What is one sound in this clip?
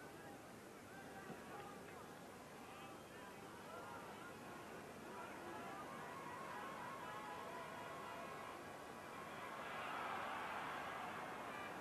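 A large stadium crowd murmurs and cheers, swelling louder toward the end.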